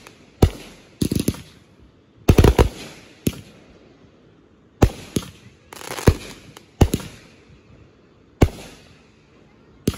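Fireworks burst with loud bangs that echo away.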